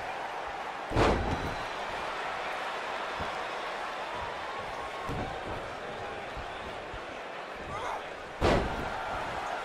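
A body slams down hard onto a wrestling ring mat with a heavy thud.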